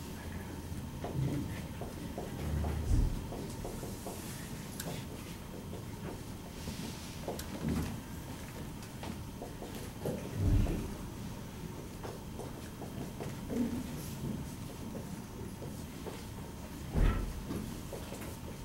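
A marker squeaks and taps across a whiteboard.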